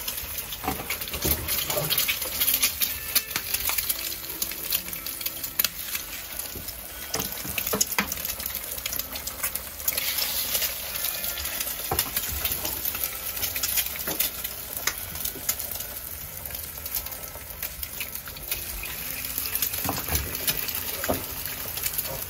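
Metal utensils clink against pans now and then.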